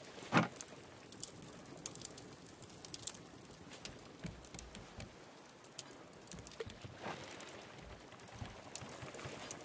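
Ocean waves wash gently nearby.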